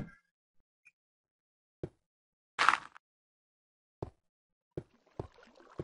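Dirt and stone crunch in short bursts as blocks are dug out.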